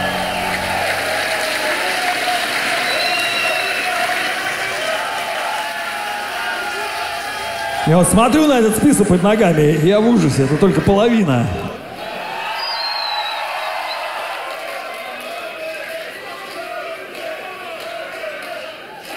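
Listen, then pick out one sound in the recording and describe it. A large crowd cheers and shouts loudly in a big hall.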